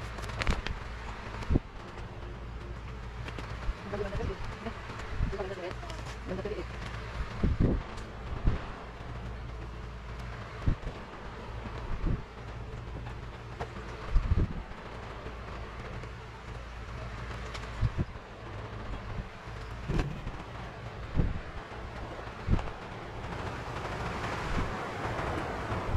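A cloth rubs and squeaks against a plastic sheet.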